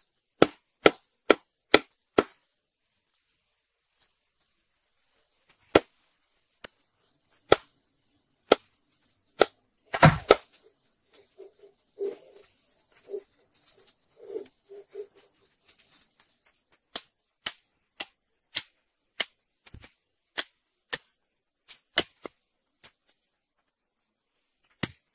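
A cleaver chops sharply into a wooden block, again and again.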